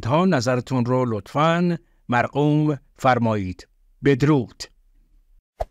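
A man speaks calmly and close.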